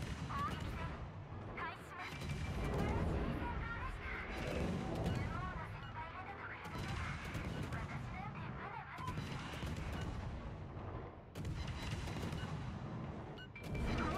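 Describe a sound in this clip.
Naval guns boom and rumble in heavy, repeated salvos.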